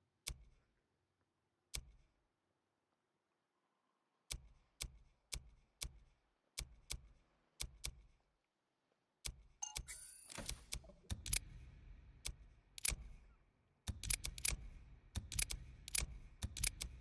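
Short menu clicks sound again and again as a selection moves.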